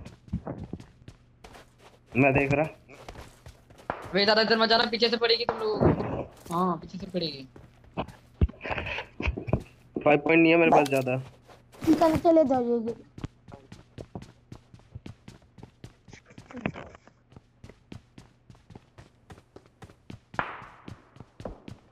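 Footsteps thud quickly and evenly on the ground.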